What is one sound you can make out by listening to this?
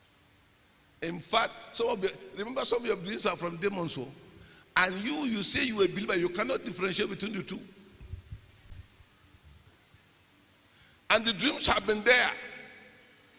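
A middle-aged man preaches with animation through a microphone in an echoing hall.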